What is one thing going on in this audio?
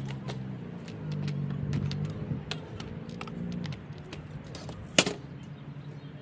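A plastic grass bag knocks and rattles against a lawn mower.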